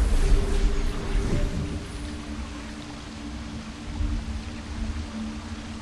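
Waterfalls rush steadily in the distance.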